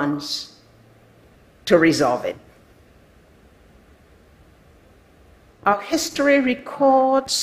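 An elderly woman speaks slowly and deliberately through a microphone in a large hall, with pauses between phrases.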